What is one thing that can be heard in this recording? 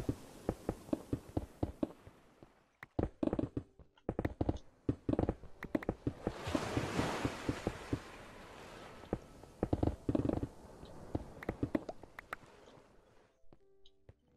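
Stone blocks crack and break in quick, repeated knocks.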